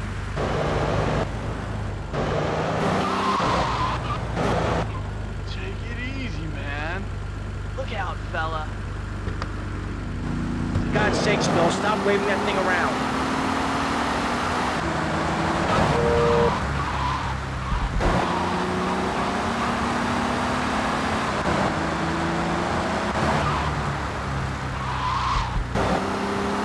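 A car engine hums steadily and revs as a taxi drives along a street.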